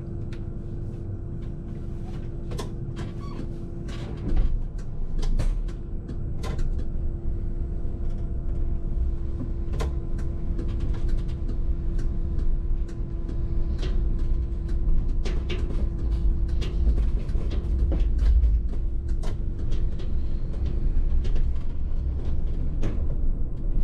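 A bus engine rumbles low and steady while driving.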